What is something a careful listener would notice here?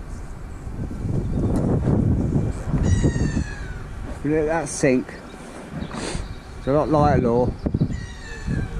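A gull calls overhead.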